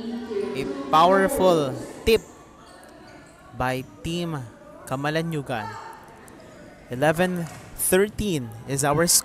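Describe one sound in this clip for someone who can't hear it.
A volleyball is struck with sharp smacks in a large echoing hall.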